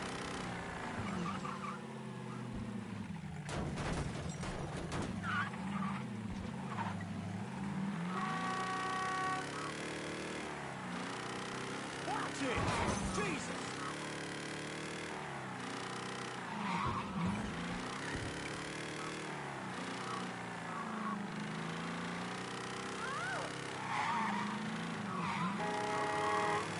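A car engine hums and revs up and down steadily.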